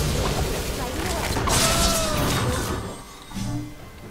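Magic spell effects whoosh and burst in quick succession.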